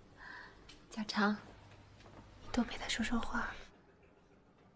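A young woman speaks gently close by.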